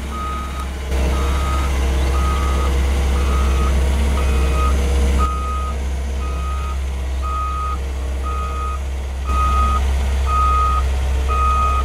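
A heavy diesel engine rumbles steadily.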